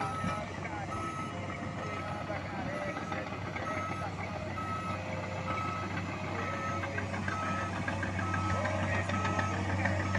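Bulldozer tracks clank and scrape over dirt.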